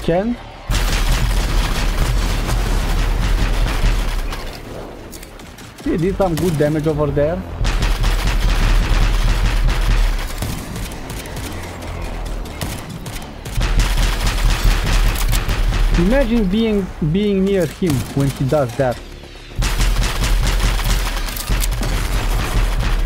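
Gunfire crackles rapidly and loudly.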